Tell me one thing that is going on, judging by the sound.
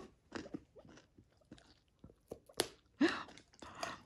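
A dog crunches a treat.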